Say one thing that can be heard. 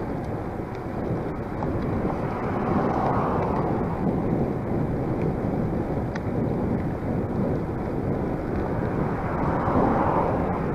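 A bicycle rolls along a paved path.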